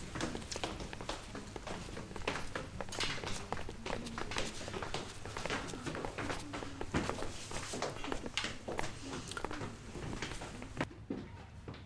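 Footsteps climb stairs indoors.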